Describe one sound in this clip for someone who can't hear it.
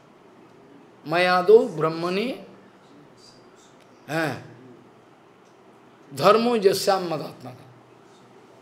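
An elderly man speaks calmly into a microphone, in short phrases with pauses.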